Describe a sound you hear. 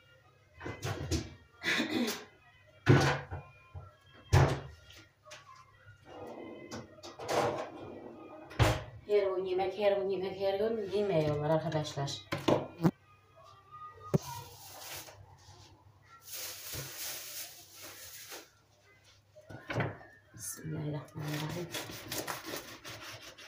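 A knife chops on a cutting board.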